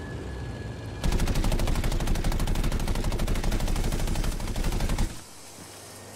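A plane's machine guns fire in rapid bursts.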